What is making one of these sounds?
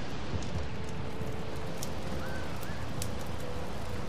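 Footsteps crunch softly on gravel.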